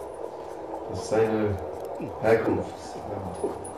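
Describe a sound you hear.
A young man speaks quietly.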